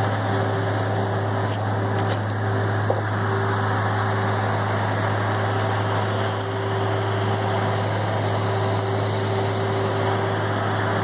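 A large diesel engine drones steadily nearby.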